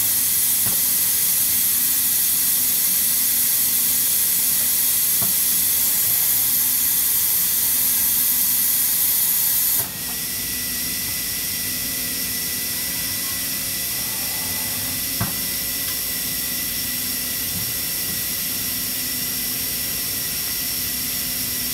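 A machine hums and whirs steadily with a high hiss.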